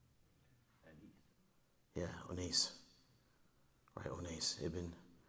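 A man speaks calmly into a close microphone, in short phrases.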